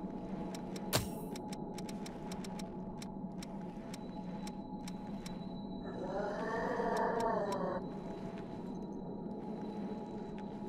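Soft menu clicks tick repeatedly as selections change.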